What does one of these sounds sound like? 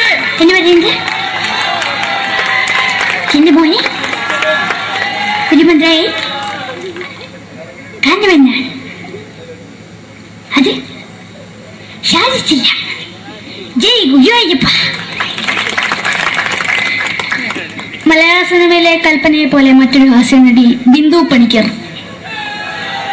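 A young boy speaks with animation into a microphone through loudspeakers.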